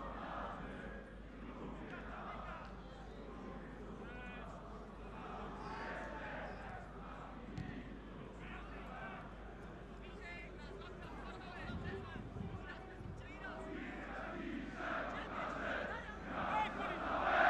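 A stadium crowd murmurs and chants steadily in the open air.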